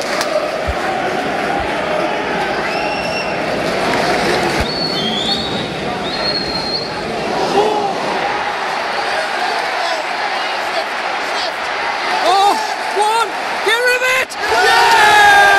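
A large stadium crowd murmurs and chants.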